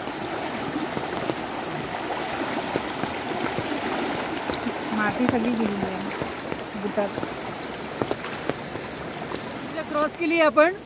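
A swollen river rushes and roars nearby.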